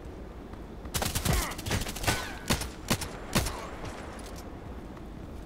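Leafy branches rustle and swish as someone pushes through a bush.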